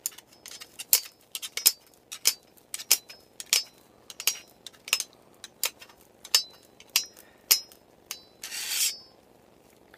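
Metal blades clink and scrape against each other in sharp, quick strokes.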